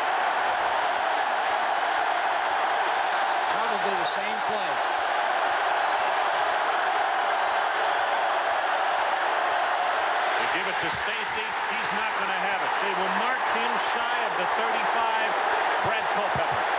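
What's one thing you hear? A large stadium crowd roars loudly and steadily.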